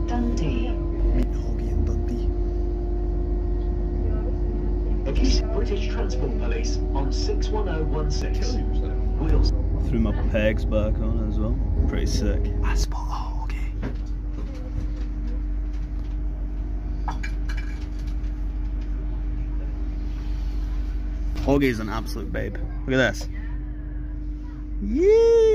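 A train rumbles and hums steadily.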